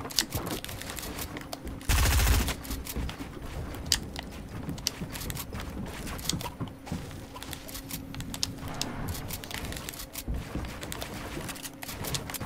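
Building pieces snap into place with quick, repeated clicks.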